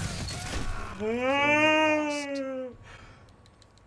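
A man yells loudly into a microphone, holding a long drawn-out note.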